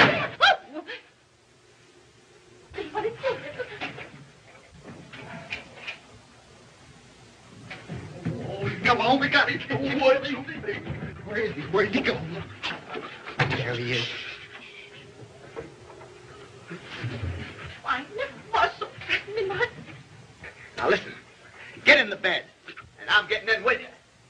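Women shriek and shout excitedly.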